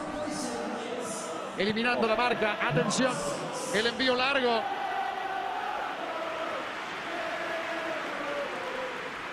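A large crowd sings and chants loudly in a stadium, outdoors.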